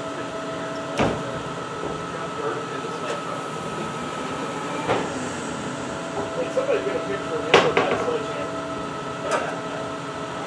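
Metal clanks and knocks inside an aircraft fuselage.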